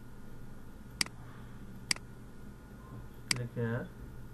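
A computer mouse clicks a few times.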